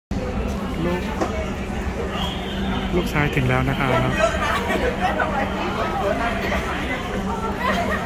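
Many men and women chatter nearby in a large, echoing hall.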